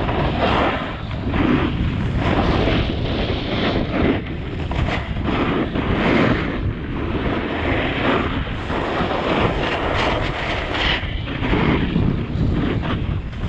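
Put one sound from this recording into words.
A snowboard scrapes and hisses through powder snow.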